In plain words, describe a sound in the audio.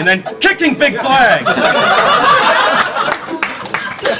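A crowd laughs in a room.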